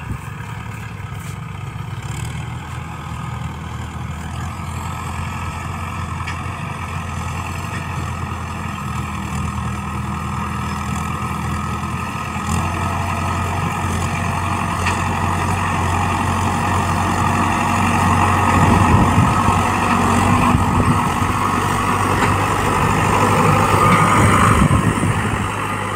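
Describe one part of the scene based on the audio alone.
A tractor engine rumbles steadily, growing louder as it draws near.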